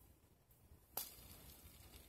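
A small metal ring clicks against fingers.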